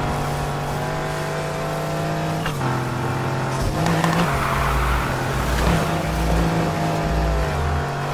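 A car engine roars steadily and shifts gears.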